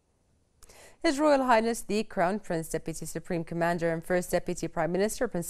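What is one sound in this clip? A young woman reads out the news calmly into a microphone.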